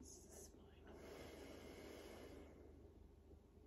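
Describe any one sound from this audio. A woman breathes out slowly and audibly.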